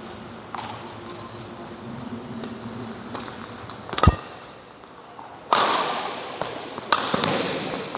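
A racket hits a shuttlecock with sharp pops.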